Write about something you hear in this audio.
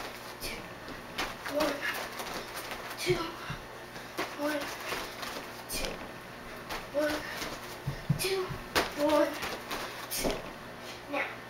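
Feet thump on a floor mat as a girl jumps.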